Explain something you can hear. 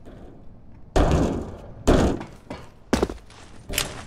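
Gunshots crack loudly with a short echo.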